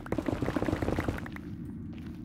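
A pickaxe chips and breaks stone blocks.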